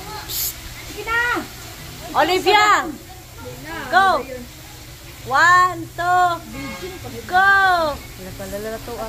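A child talks and calls out loudly nearby.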